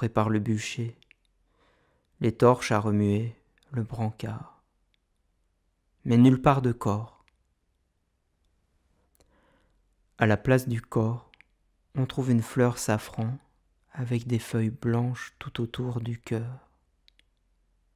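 A man speaks calmly nearby in short phrases.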